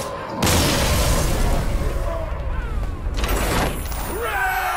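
A loud magical explosion bursts and rumbles.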